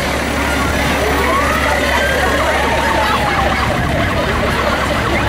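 A fire engine's siren wails, rising and falling.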